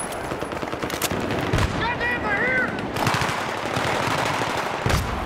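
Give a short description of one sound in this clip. Gunfire crackles and booms in quick bursts.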